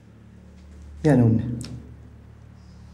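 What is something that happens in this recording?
A man speaks close by in a tense, questioning voice.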